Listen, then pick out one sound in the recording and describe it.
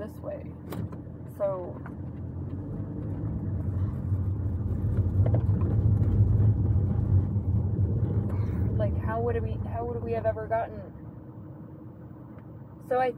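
A car engine rumbles low, swelling louder and then easing off.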